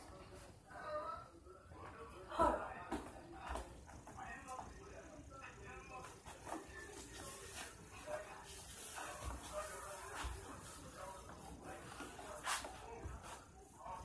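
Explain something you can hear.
Footsteps thump on a wooden floor nearby.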